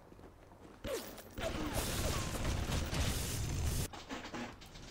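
Electricity crackles and buzzes loudly in a burst.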